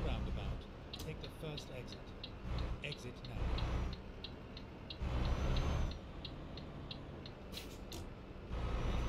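A turn signal ticks evenly.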